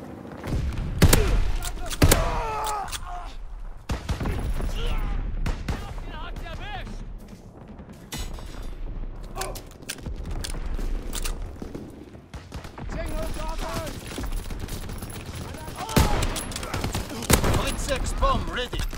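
Gunshots crack and echo in short bursts.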